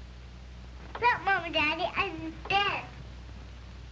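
A young girl sings in a high, bright voice.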